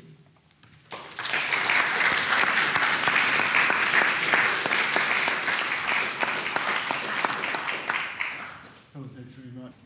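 An audience applauds in a large room.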